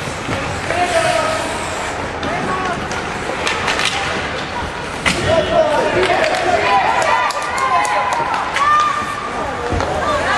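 Spectators cheer and shout in a large echoing arena.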